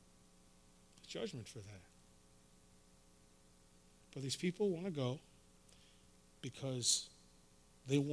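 A man speaks slowly and deliberately into a microphone, with long pauses.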